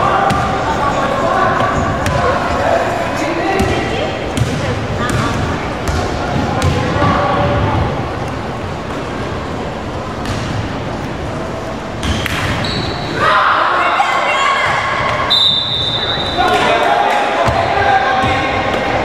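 Children shout and call out in a large echoing gym.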